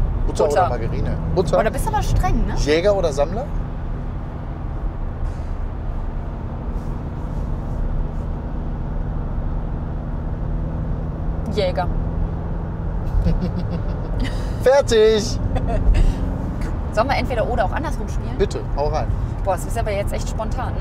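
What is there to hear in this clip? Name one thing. A car engine hums steadily with road noise.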